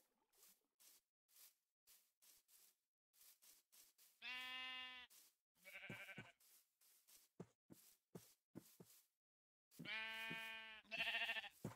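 Footsteps crunch steadily on grass.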